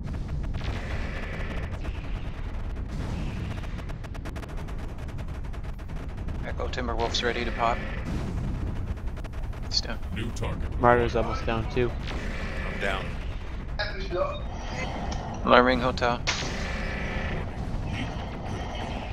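Laser weapons fire with a sharp electric buzz.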